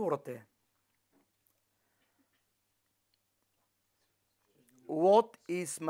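A middle-aged man speaks calmly and closely, pausing between phrases.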